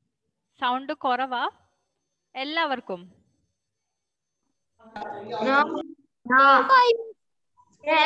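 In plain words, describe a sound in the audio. A young girl speaks with animation through an online call.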